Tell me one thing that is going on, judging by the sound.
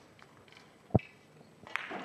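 Billiard balls knock against each other and the cushions.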